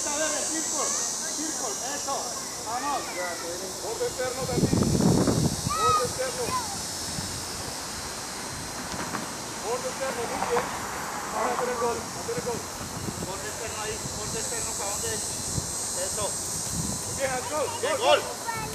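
A man calls out instructions to children.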